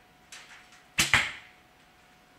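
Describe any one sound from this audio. A bowstring snaps as an arrow is released.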